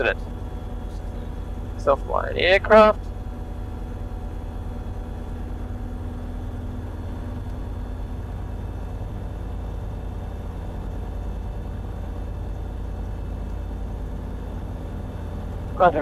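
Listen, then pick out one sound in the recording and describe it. A light aircraft engine drones steadily inside the cockpit.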